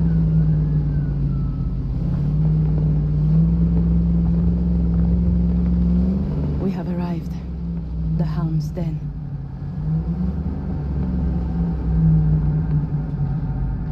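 A car engine rumbles steadily as the car drives.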